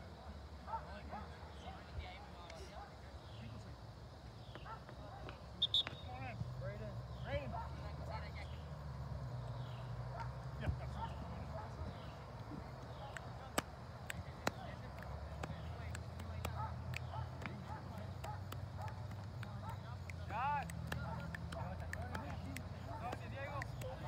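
Young players shout and call out from far across an open field.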